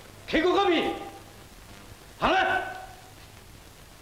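A man speaks sharply to a group.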